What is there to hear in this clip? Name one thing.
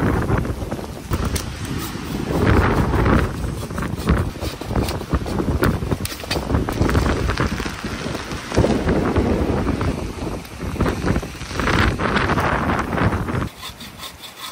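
Branches rustle and crack as they are dragged through brush.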